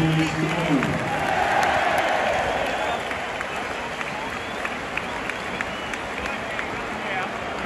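A large stadium crowd roars and cheers loudly in the open air.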